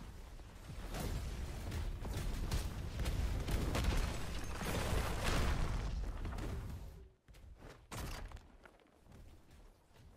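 Swords slash and clash in quick strikes.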